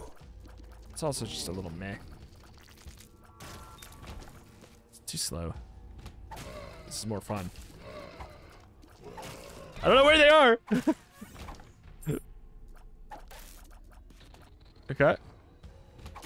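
A cartoonish monster lets out gurgling, wobbling cries.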